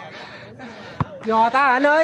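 A football thumps off a player's head.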